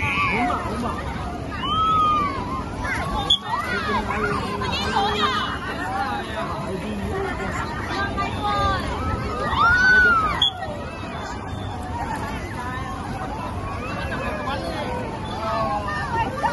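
Children squeal and scream with delight.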